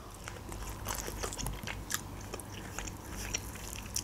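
Chicken meat tears apart.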